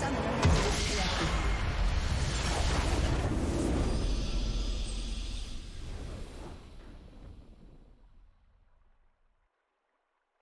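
A triumphant fanfare swells and then slowly fades out.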